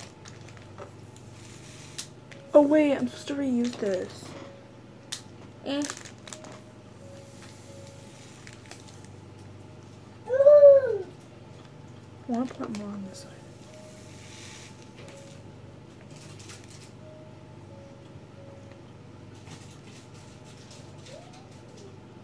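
A plastic bag crinkles in hands.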